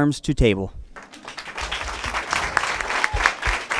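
A crowd applauds and claps.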